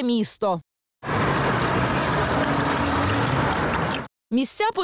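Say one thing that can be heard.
A dog laps water.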